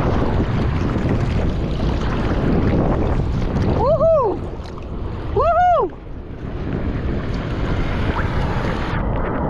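Ocean waves rush and churn all around.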